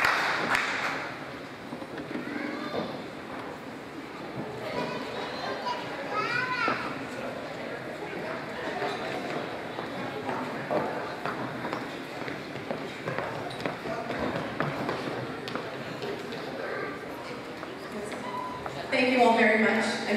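A crowd murmurs and chatters quietly.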